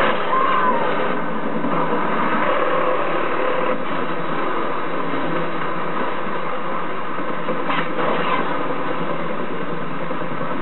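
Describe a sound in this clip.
Video game sounds play loudly through a television speaker.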